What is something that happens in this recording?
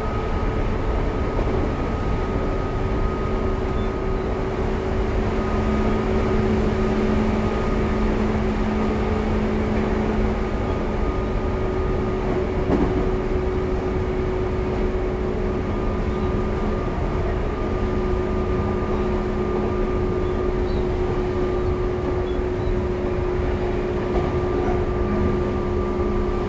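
An electric train hums steadily.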